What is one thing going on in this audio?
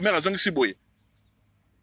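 A man speaks briefly, close to the microphone.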